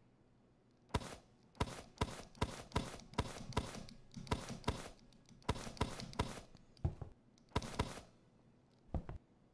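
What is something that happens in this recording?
Cans are set down on a shelf with short knocks.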